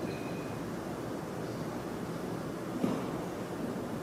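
A glass is set down on a hard surface.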